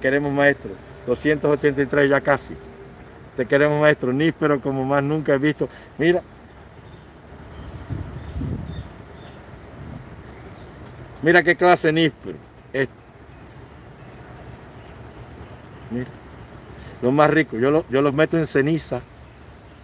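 A man speaks with animation, close to a phone microphone.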